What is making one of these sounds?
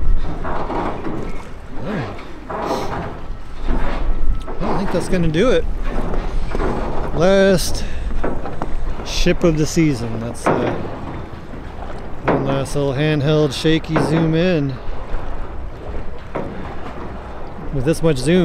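Wind gusts outdoors by open water.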